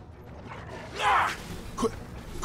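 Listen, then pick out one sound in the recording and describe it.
A magic blast bursts with a loud crackling roar.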